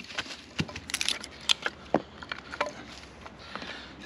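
A knife taps and splits dry wood with sharp knocks.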